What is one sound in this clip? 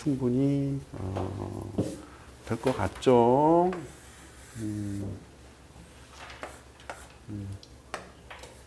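A middle-aged man speaks calmly and with emphasis, close to a microphone.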